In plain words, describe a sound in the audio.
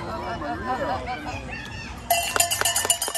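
Players call out across an open field.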